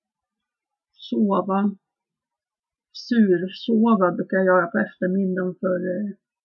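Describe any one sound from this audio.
A woman speaks calmly and close up.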